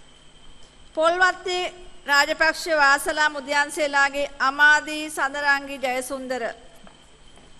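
A man speaks clearly and steadily through a loudspeaker in a large hall.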